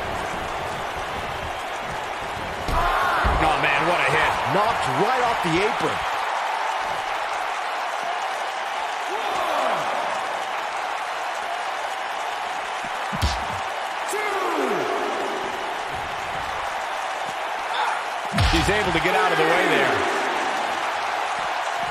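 A large crowd cheers steadily in a big arena.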